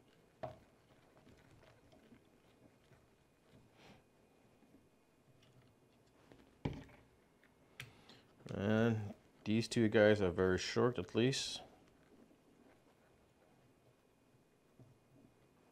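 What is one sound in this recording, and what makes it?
Small plastic parts click and knock softly as they are fitted together by hand.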